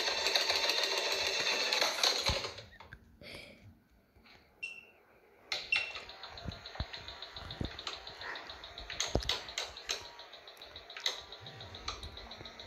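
Electronic game sounds and quick chiming effects play from a small phone speaker.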